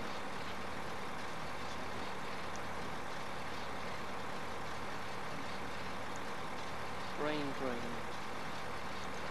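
A tractor engine hums steadily as it drives across a field.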